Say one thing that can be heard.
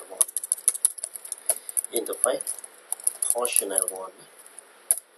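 Keys clatter quickly on a computer keyboard.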